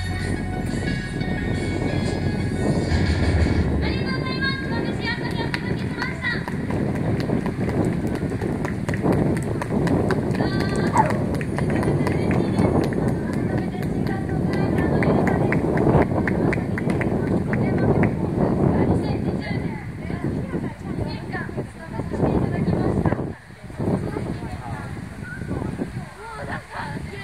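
A young woman sings into a microphone over outdoor loudspeakers.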